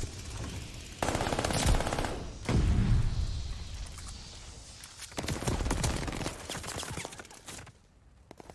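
A submachine gun fires in bursts.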